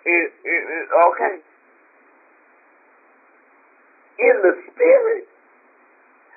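A woman speaks calmly through a microphone, in short phrases with pauses.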